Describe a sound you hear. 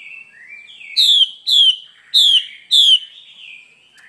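A bird gives four loud, sharp falling calls.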